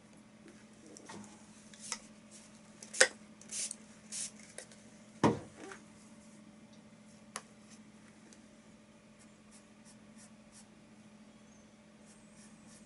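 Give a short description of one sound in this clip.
A paintbrush taps and brushes softly against a canvas.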